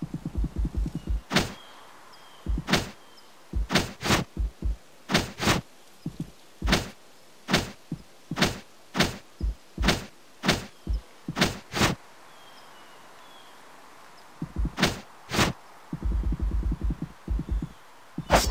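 Rapid soft footstep blips patter as a small character runs.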